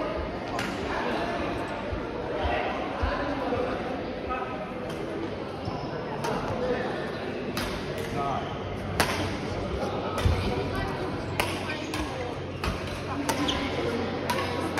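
Men call out and chatter in the background.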